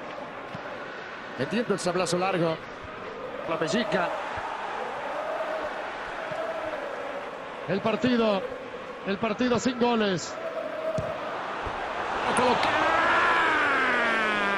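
A large stadium crowd murmurs, then swells into a roar.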